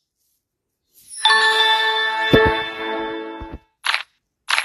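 A bright chime rings out.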